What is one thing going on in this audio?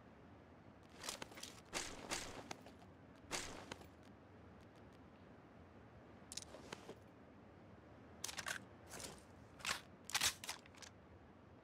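Soft clicks and rustles of gear being picked up.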